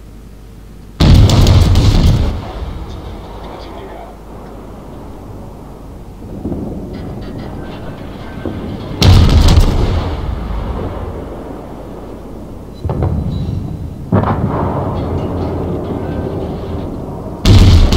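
Heavy naval guns fire with loud booming blasts.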